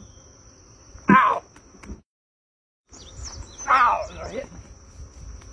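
A man yells loudly in alarm.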